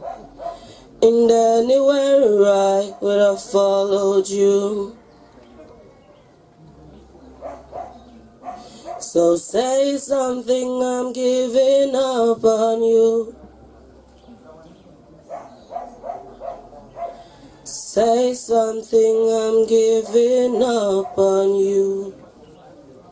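A young man sings slow held notes through a microphone and loudspeaker.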